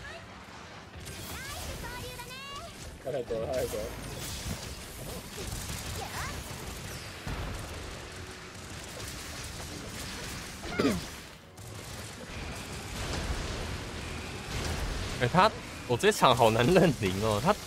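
Sword blows strike a monster's hide.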